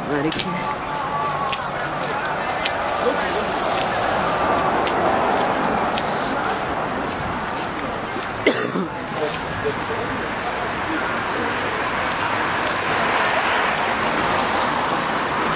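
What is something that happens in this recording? Footsteps tap on pavement nearby.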